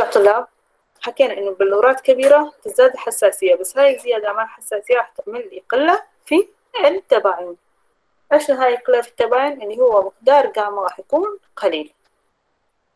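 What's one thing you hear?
A young woman speaks steadily through an online call.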